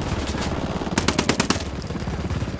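Suppressed gunshots fire in a quick burst.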